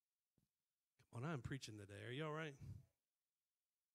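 A man speaks into a microphone in a calm, measured voice.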